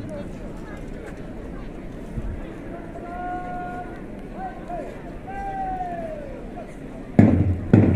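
A large crowd murmurs at a distance outdoors.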